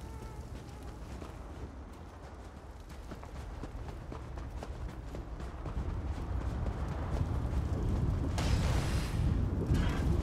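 Footsteps crunch on rough ground at a run.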